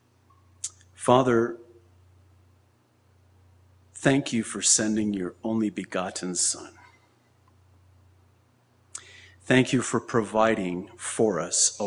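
A middle-aged man speaks slowly and earnestly into a microphone, with pauses.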